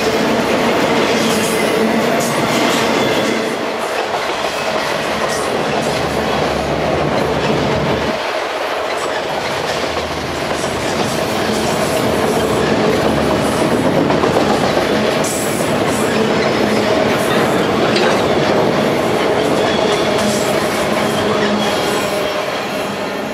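A long freight train rumbles past close by, its wheels clattering and squealing on the rails.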